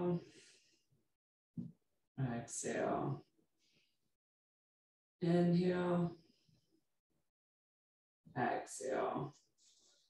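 A woman speaks calmly in short phrases, close by.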